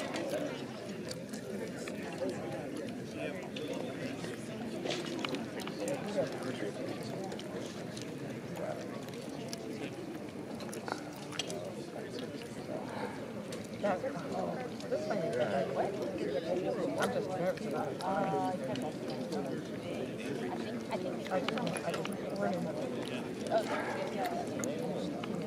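A crowd of men and women murmurs and chatters outdoors.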